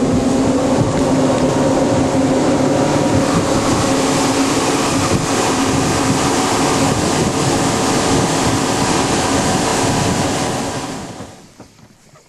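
An outboard motor roars loudly at speed.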